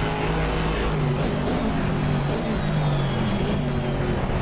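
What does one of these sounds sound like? A racing car engine drops in pitch with a series of downshifts while braking.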